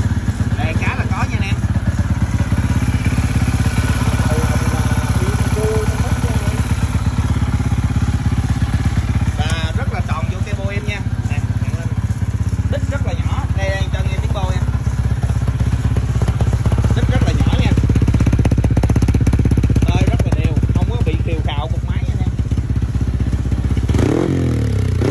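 A motorcycle engine idles with a fast, steady throb.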